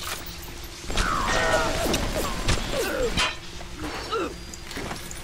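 A machine gun fires a short burst.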